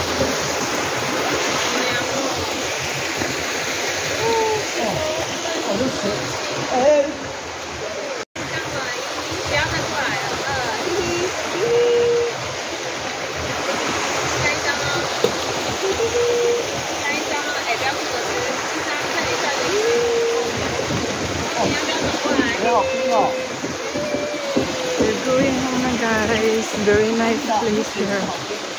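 A stream trickles and splashes over rocks.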